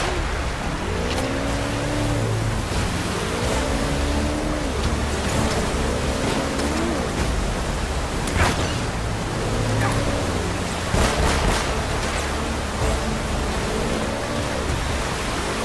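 Rushing water splashes steadily.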